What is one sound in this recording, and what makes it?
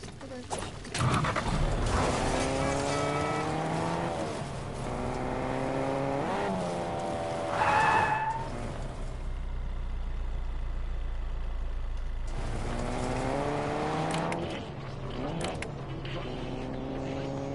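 A car engine revs up and down as a car speeds along.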